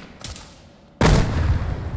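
An explosion booms loudly nearby.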